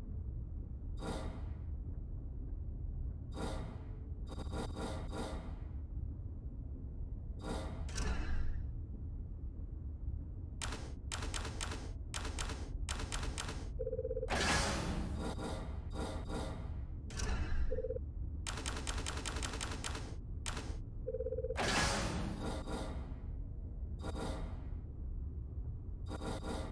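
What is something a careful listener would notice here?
Short interface clicks and chimes sound as menu items are selected.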